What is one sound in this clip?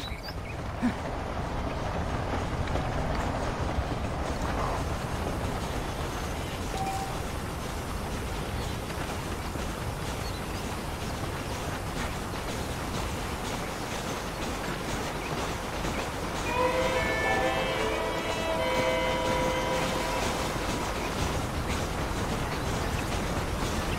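Boots crunch on dry dirt in steady footsteps.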